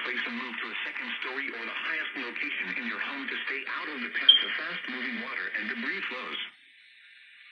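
A small radio plays with a thin, tinny sound.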